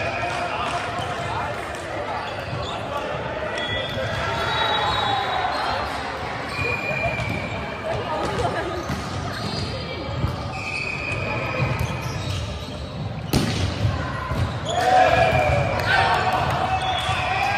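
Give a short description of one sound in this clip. Shoes squeak sharply on a hard court in a large echoing hall.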